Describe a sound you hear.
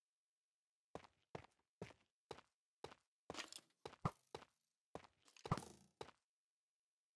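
Stone blocks thud as they are placed, one after another.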